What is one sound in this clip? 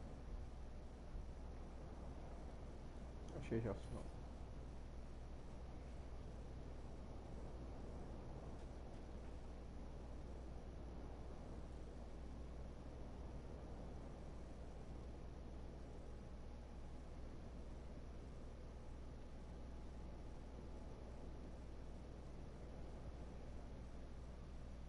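A small fire crackles softly nearby.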